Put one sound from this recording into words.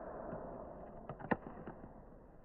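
A tablet clatters as it falls onto stone.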